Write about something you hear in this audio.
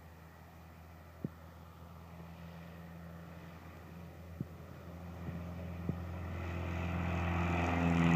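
A small propeller plane's engine drones and grows steadily louder as it approaches.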